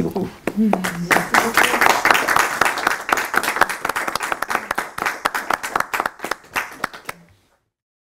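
Several people clap their hands in applause.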